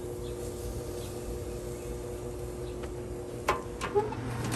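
Food sizzles on a hot grill.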